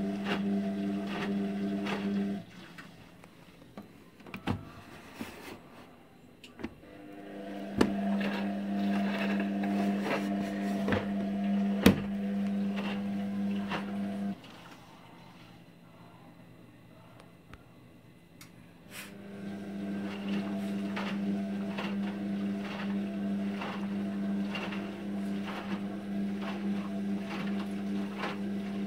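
Wet laundry sloshes and thumps as a washing machine drum turns.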